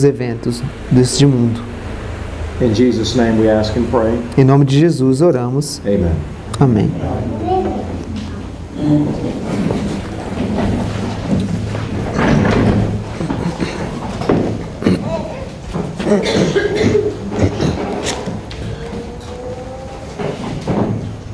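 A man speaks in an echoing room.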